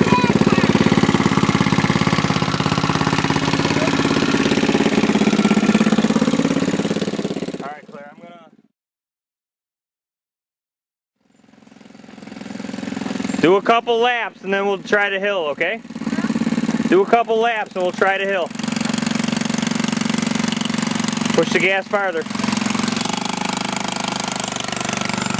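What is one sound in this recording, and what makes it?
A small quad bike engine idles and revs close by.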